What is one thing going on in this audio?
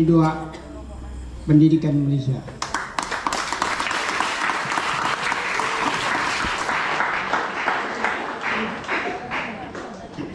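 A man speaks into a microphone, heard through loudspeakers in an echoing hall.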